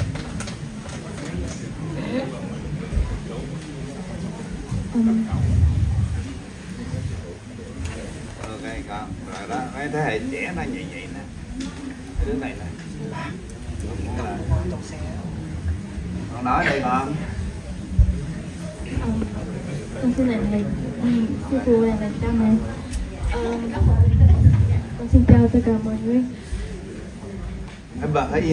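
A young woman speaks calmly into a microphone, heard through a loudspeaker.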